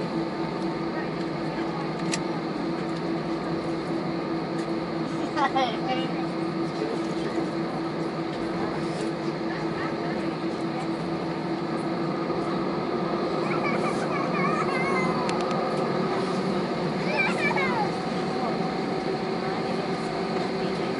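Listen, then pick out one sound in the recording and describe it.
The jet engines of a twin-engine jet airliner hum and whine steadily, heard from inside the cabin as it taxis.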